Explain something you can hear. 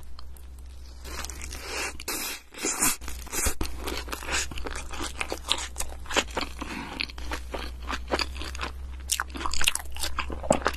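A young woman chews food loudly and wetly close to a microphone.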